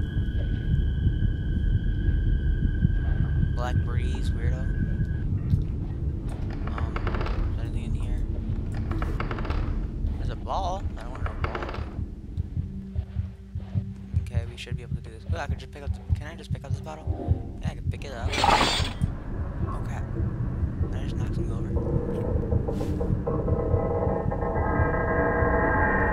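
Footsteps thud on a creaky wooden floor.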